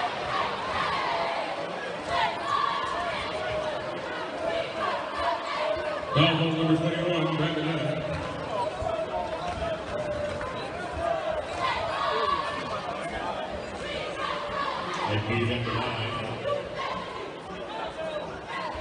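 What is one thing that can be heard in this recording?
A crowd murmurs and chatters in a large echoing arena.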